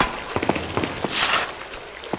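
A bright chime rings as treasure is collected.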